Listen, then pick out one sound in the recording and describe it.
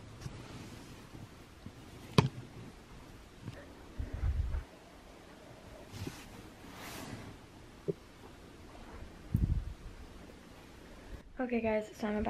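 Clothes rustle as hands handle them.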